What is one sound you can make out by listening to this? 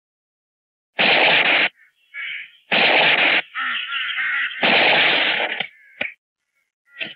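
Gunshots ring out loudly.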